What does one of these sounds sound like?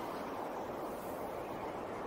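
Boots crunch through deep snow.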